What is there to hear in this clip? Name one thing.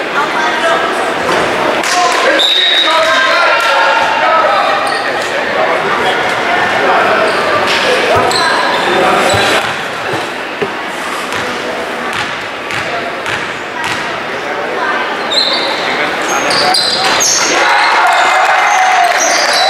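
Sneakers squeak on the gym floor.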